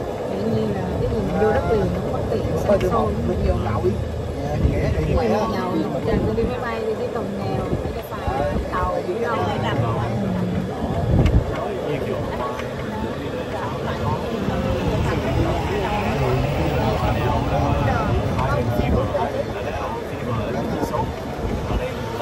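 A small vehicle's motor hums steadily while driving.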